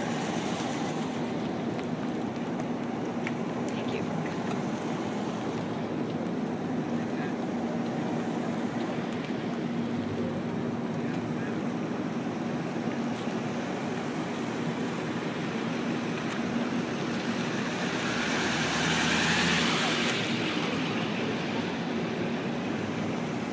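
Police cars and trucks roll slowly past one after another on asphalt.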